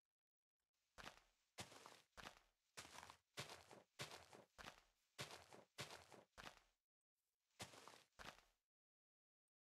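Leafy blocks crunch and rustle as they are broken in quick repeated bursts.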